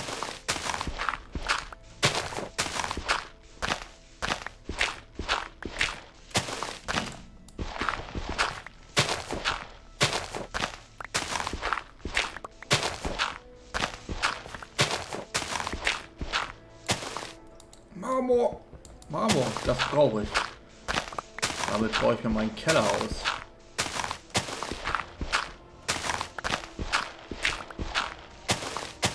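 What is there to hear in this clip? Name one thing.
Dirt crunches in quick, repeated scrapes as a shovel digs away at it.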